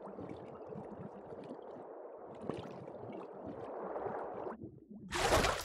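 Water churns and bubbles, heard muffled as if underwater.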